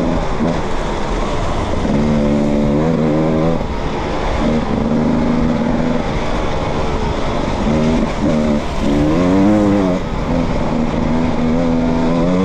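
Tyres crunch over a dirt trail.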